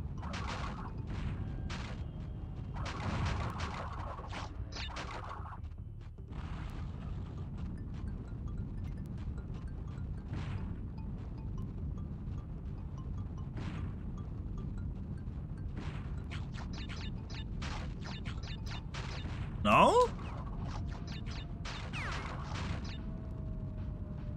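Video game sound effects play from a television, with quick pops and chimes.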